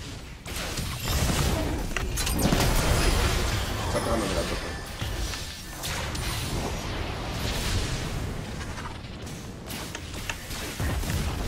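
Video game spell blasts and clashes crackle and boom.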